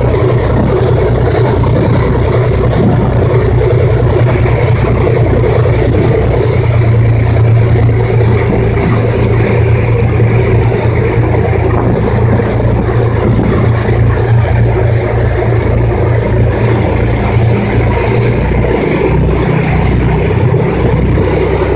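A boat's wake churns and rushes loudly behind it.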